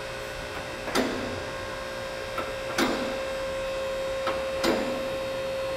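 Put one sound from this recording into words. A car lift's safety latches clack at regular intervals.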